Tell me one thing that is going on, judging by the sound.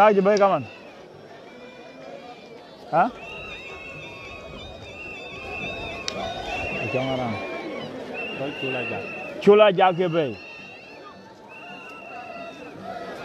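A large crowd murmurs and calls out at a distance outdoors.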